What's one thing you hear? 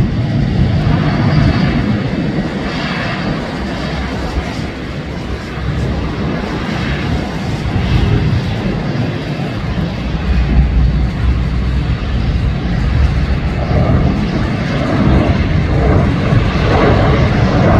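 A jet airliner's engines rumble and whine steadily as it taxis close by.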